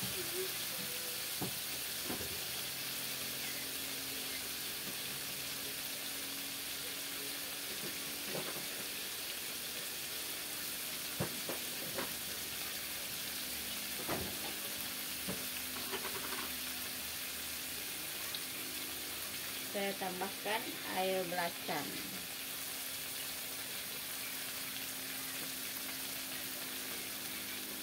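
Sauce sizzles softly in a hot pan.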